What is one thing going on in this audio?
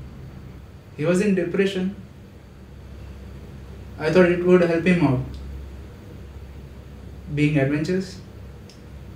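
A young man speaks quietly and tensely, close by.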